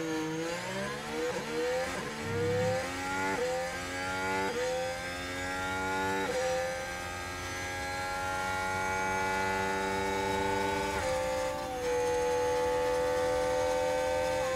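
A racing car engine revs up through the gears, its whine rising and dropping with each shift.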